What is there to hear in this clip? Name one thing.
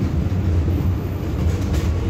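A passing tram swooshes by close outside.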